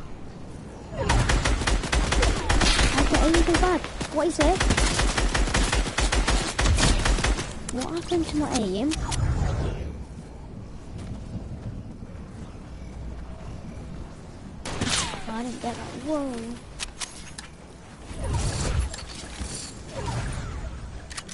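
Gunfire rattles in a video game.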